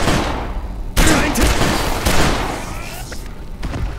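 A pistol fires a few loud shots indoors.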